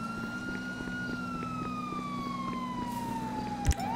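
Footsteps run on a paved road.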